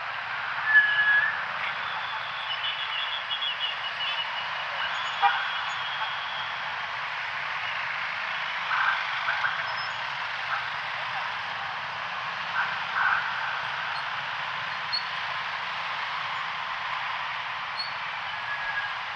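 Motorbike horns honk in short bursts.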